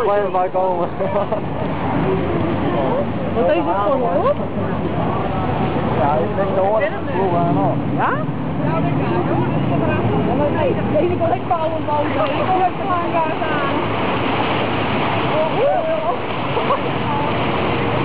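Several people on a boat talk and call out with animation.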